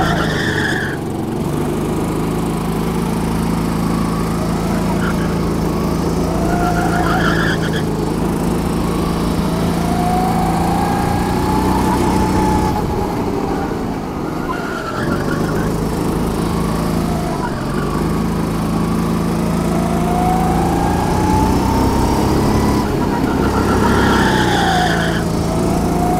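A kart engine roars loudly close by, revving up and down.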